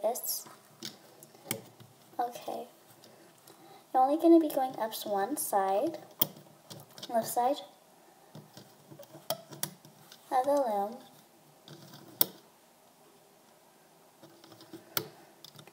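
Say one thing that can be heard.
Rubber bands snap and click against plastic pegs.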